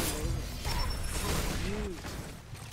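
A fiery magic explosion bursts with a loud whoosh.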